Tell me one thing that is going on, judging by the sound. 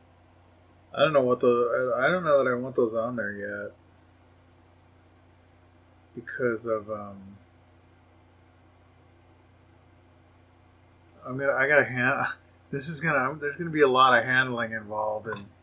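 A middle-aged man talks calmly, close to a microphone.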